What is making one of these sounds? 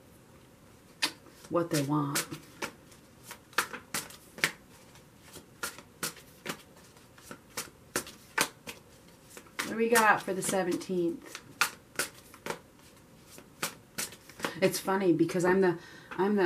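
Playing cards are shuffled with quick soft clicks and flutters.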